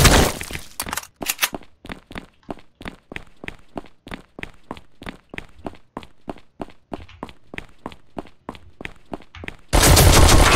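Footsteps tap steadily and quickly on a hard floor.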